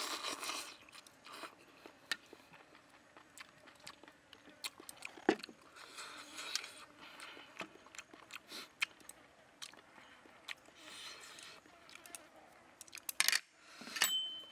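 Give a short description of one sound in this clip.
A man chews food noisily, close by.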